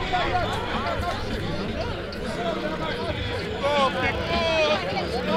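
A crowd of young men chatter and call out loudly outdoors.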